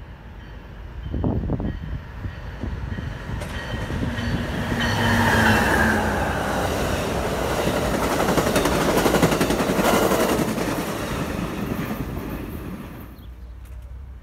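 A passenger train rumbles past close by at speed, its wheels clattering on the rails.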